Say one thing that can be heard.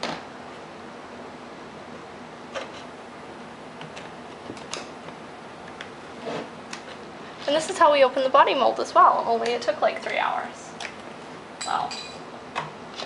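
Brittle material crackles and snaps as it is peeled by hand.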